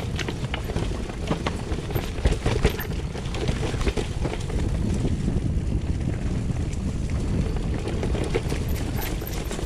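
Bicycle tyres rattle and bump over rough stones.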